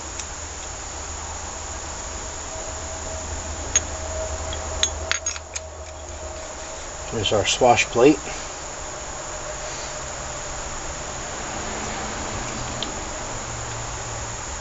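Metal parts clink and knock as they are handled.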